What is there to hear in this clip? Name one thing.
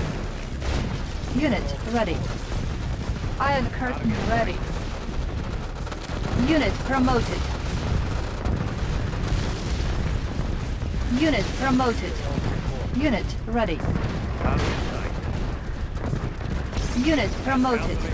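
Gunfire and explosions rumble steadily through a battle.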